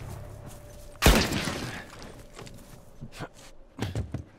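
A man clambers through a window with a loud thump.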